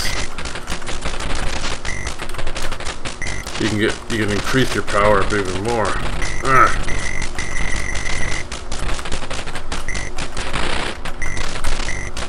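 Explosions burst now and then.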